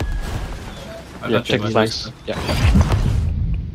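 A magical energy blast whooshes and rumbles.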